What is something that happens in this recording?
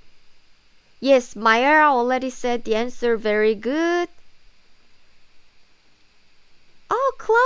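A young woman speaks clearly and with animation close to a microphone.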